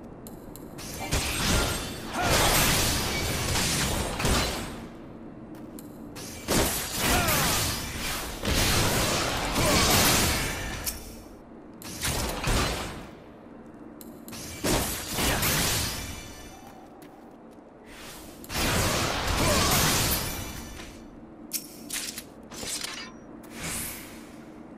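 Weapon strikes whoosh and crash in repeated bursts.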